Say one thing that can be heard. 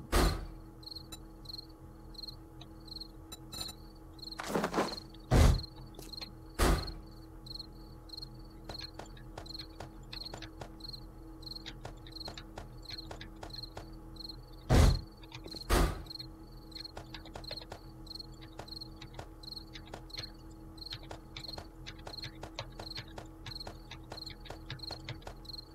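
Soft clicks tick rapidly, one after another.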